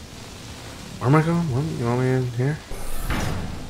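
A young man speaks loudly and with drawn-out words into a close microphone.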